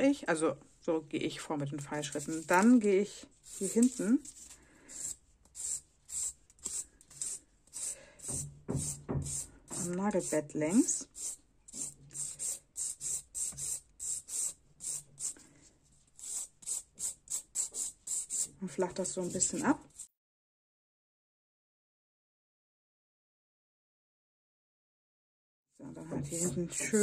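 A nail file rasps in quick, rhythmic strokes against a fingernail.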